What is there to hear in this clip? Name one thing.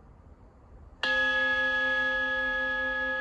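A reed organ sounds a loud, steady chord.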